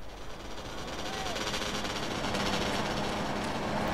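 A motorbike engine buzzes nearby.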